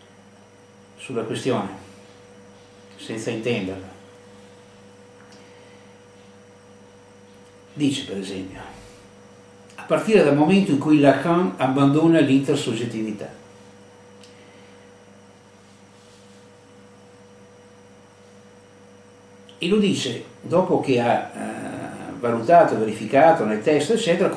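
A middle-aged man reads aloud slowly and calmly, close to a microphone, with long pauses.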